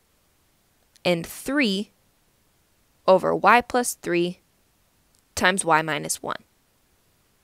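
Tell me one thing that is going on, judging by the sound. A young woman speaks calmly and clearly into a nearby microphone.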